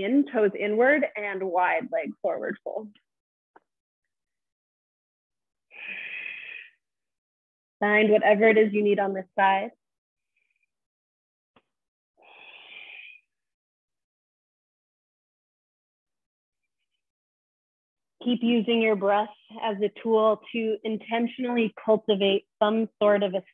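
A woman speaks calmly and evenly into a close microphone.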